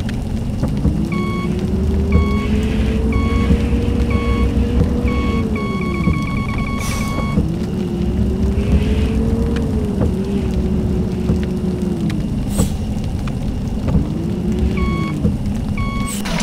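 A reversing alarm beeps repeatedly.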